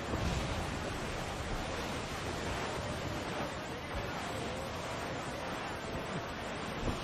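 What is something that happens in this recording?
Rough waves crash and wash against a ship's hull.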